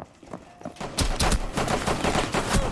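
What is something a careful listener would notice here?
Gunshots crack rapidly.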